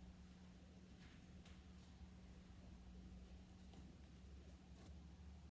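Bare feet step softly on a wooden floor.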